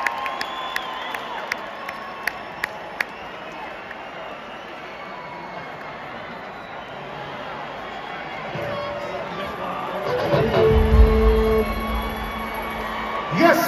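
A band plays live music through loudspeakers, heard from far back in an open-air crowd.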